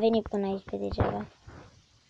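A pick chips at stone.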